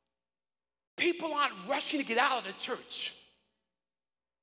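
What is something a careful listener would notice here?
A man preaches with animation through a microphone.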